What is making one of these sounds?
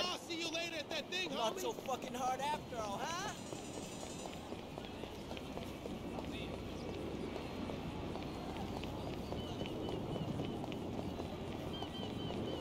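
Footsteps thud quickly on wooden boards as a man runs.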